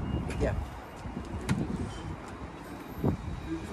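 A wooden door is pushed open.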